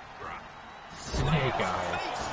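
A heavy body slams onto a wrestling ring mat with a loud thud.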